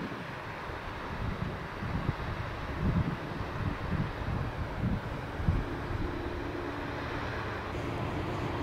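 A wide river rushes and roars over rapids.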